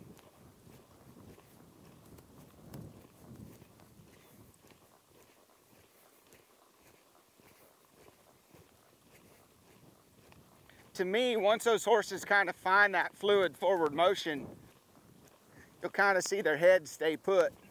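Horses' hooves thud softly on soft dirt.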